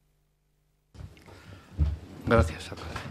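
An older man speaks into a microphone in a hushed voice.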